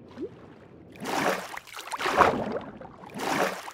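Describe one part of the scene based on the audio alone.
Water swirls and splashes as a swimmer moves underwater.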